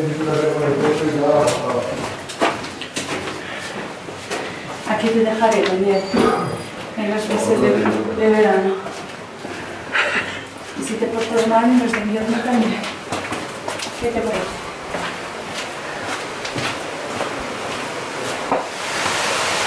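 Footsteps tap on a hard floor in a tunnel.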